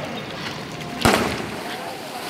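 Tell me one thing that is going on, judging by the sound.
A diver splashes into the water.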